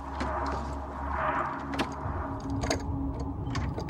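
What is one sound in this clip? Knuckles knock on a wooden door.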